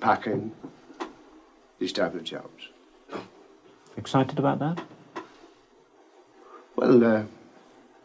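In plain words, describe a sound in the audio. A middle-aged man speaks calmly and close by, in halting phrases.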